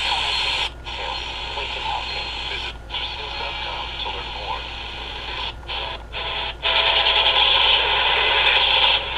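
A small radio hisses and crackles with static, cutting out briefly as it is tuned.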